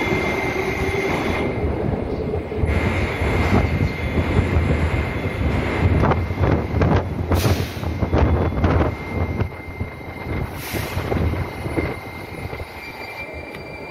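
A subway train hums and rumbles while standing in an echoing underground station.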